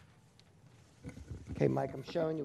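A man speaks calmly through a microphone in a large room.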